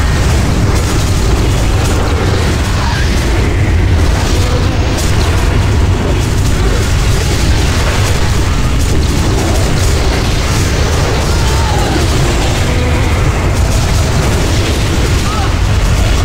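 Magic spells crackle and blast in a battle.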